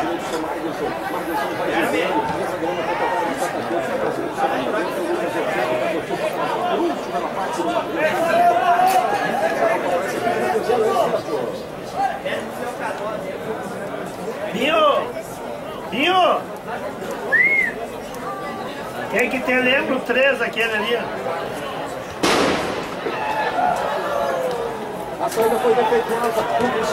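A crowd of spectators chatters and shouts across an open field.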